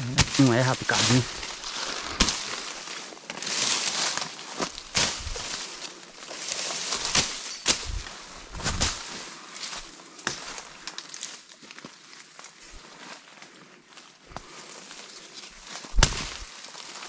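Footsteps crunch and rustle through dry grass and twigs.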